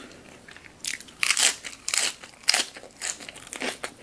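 A woman chews crunchy food close to a microphone with loud crackles.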